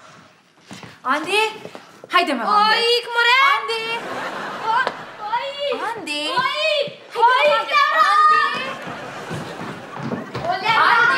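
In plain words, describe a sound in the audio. A young woman talks loudly with animation.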